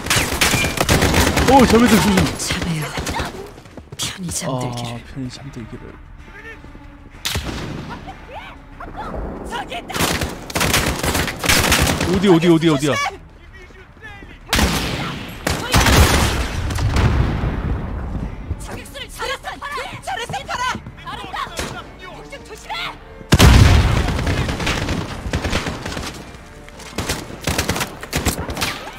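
Rifle gunfire cracks in rapid bursts.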